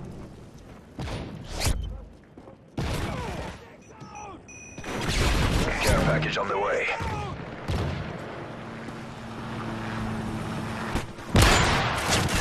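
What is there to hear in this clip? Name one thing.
A rifle fires loud, sharp shots that echo.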